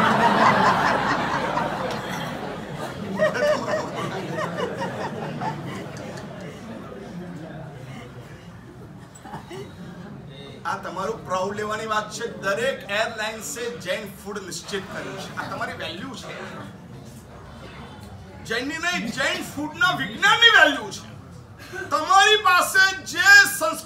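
An elderly man speaks with animation, close to a microphone.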